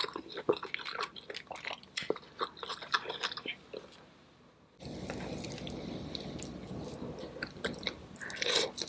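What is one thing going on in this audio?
A woman chews food close to a microphone with wet, smacking mouth sounds.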